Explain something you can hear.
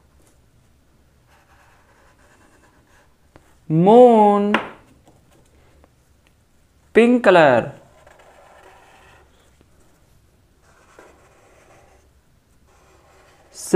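A felt-tip pen scratches softly across paper.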